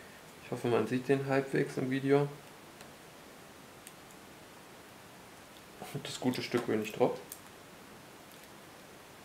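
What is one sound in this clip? Small plastic parts click and tap softly as fingers pry at them.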